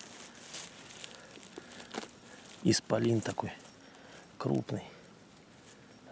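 Moss and soil tear as a mushroom is pulled from the ground.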